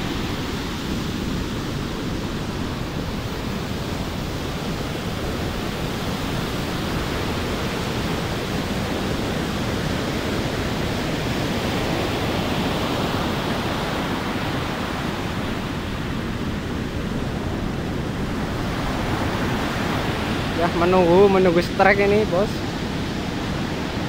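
Heavy ocean surf breaks on the shore and rushes up the beach.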